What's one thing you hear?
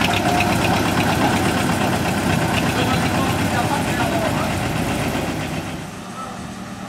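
A small diesel locomotive engine rumbles as it moves slowly along the track.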